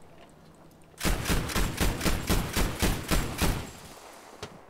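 A heavy gun fires a rapid string of loud shots.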